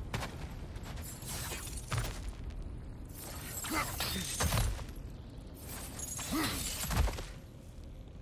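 A chain whooshes and rattles as it swings.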